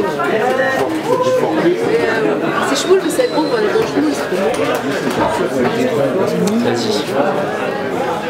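An electric guitar is strummed loosely.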